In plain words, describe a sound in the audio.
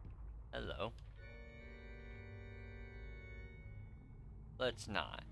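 An organ plays a long, steady chord.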